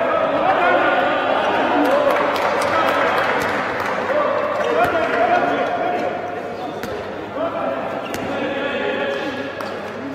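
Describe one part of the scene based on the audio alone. A ball thuds as it bounces on a hard floor.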